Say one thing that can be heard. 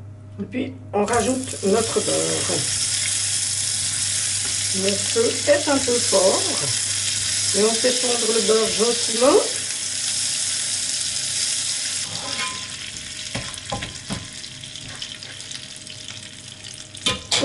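Butter sizzles loudly in a hot frying pan.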